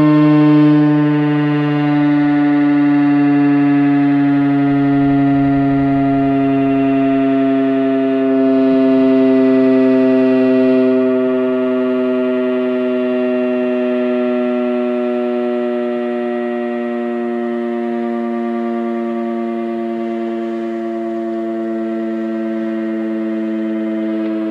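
A loud outdoor warning siren wails steadily, its pitch slowly dropping.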